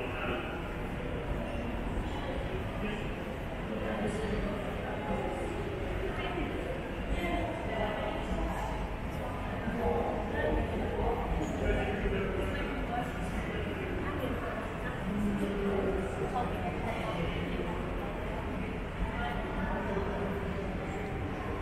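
A crowd of adults murmurs and chatters in the distance, in a large open space.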